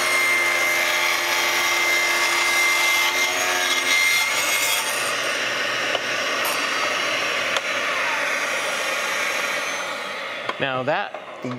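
A small table saw whines as it cuts through wood.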